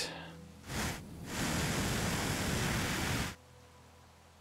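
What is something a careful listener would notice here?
A blowtorch hisses in short bursts.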